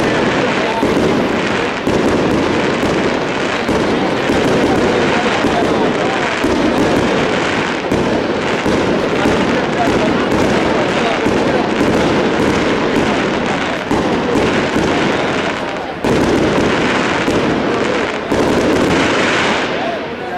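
Fireworks burst and crackle overhead in rapid succession.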